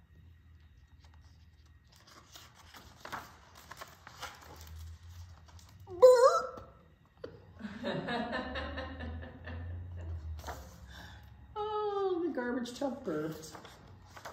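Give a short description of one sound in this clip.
Book pages rustle as they turn.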